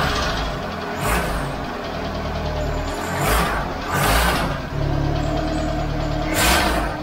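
A car engine revs up in short, loud bursts.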